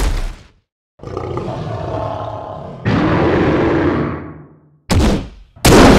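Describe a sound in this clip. A heavy sword swings through the air with a whoosh.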